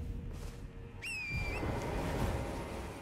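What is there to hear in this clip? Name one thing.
A bright magical chime rings out with a shimmering sparkle.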